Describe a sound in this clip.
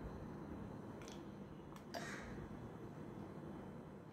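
Thick liquid pours and splashes into a glass.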